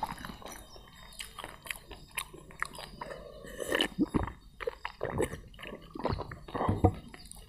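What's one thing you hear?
Fingers squish and mash wet food.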